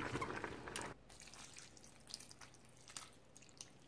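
Water pours from a glass into a bowl.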